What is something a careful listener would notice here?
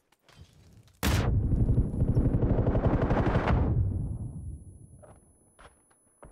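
Gunshots crack loudly and echo away.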